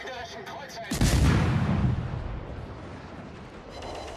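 Explosions rumble on a distant shore.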